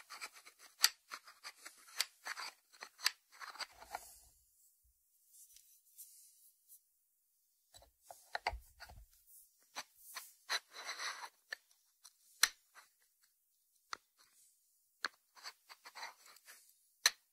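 Fingertips tap on a ceramic lid.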